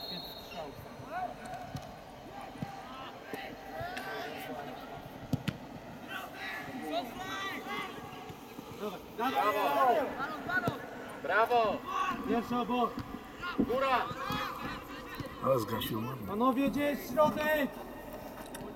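Several men shout loudly nearby outdoors.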